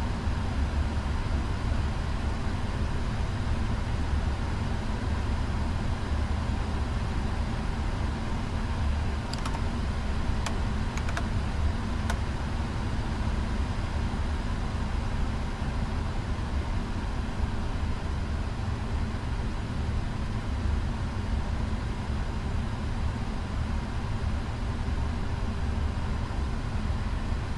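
Jet engines rumble steadily at idle.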